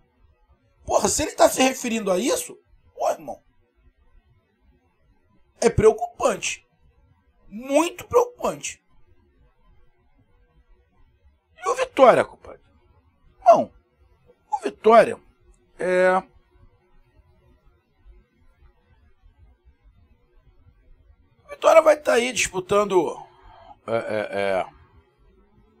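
A middle-aged man talks with animation into a close microphone, in short bursts with pauses.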